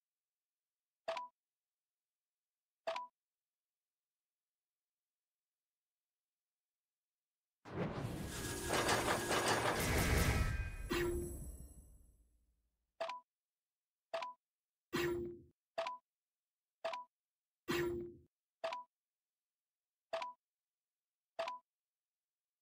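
Short interface chimes sound with each tap.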